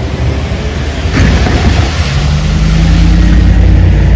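A car hisses past on a wet road.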